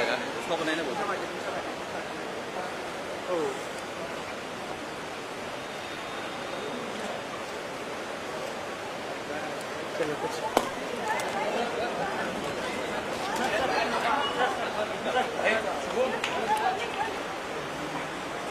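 A crowd of people chatters and calls out excitedly nearby.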